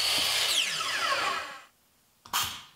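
A power saw spins down with a fading whine.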